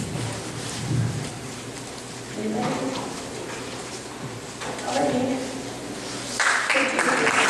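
A woman speaks calmly through a microphone in an echoing room.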